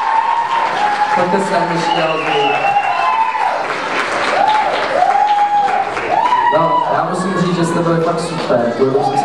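A man talks through a microphone in a large echoing hall.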